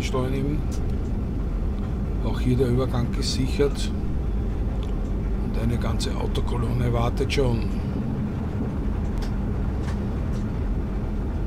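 An electric train rumbles steadily along the tracks.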